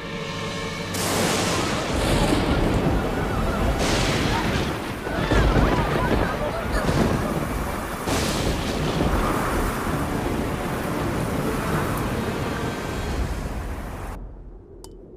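Strong wind roars through trees in a storm.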